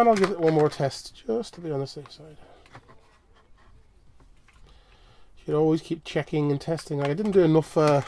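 A small screwdriver scrapes as it turns tiny screws.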